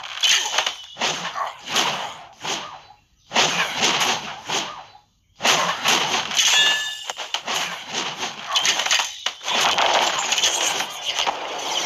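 Swords clash and strike in a noisy battle.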